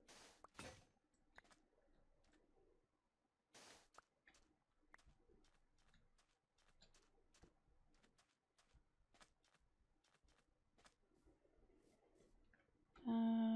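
Footsteps patter on sand and grass.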